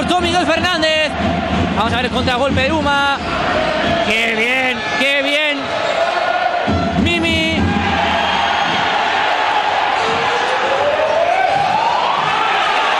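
A large crowd cheers and chants in an echoing indoor arena.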